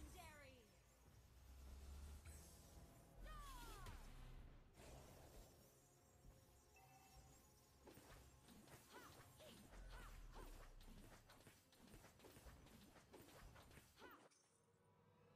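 Mobile battle game spell and hit effects crackle and clash.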